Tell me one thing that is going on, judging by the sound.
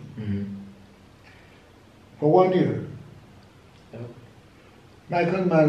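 An elderly man speaks calmly and close by, in short phrases.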